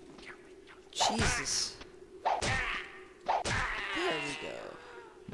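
Swords clash and ring with metallic clangs.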